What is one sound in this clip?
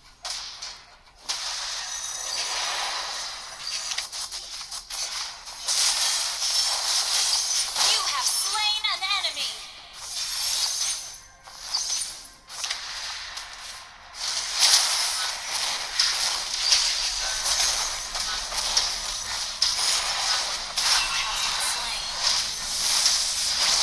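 Video game combat sound effects clash and burst.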